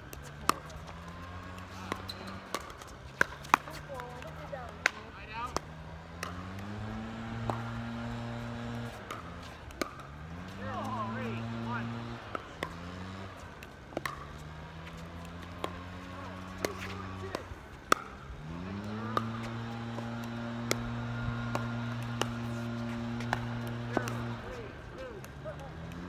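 Paddles pop sharply against a plastic ball outdoors.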